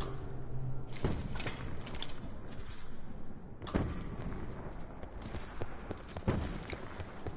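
Gunshots crack loudly in short bursts.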